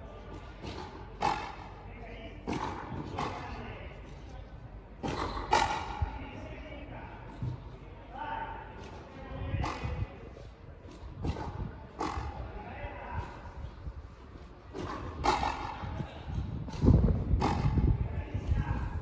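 Shoes squeak and scuff on a hard court.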